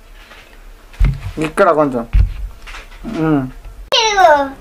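A second young boy answers in a high voice.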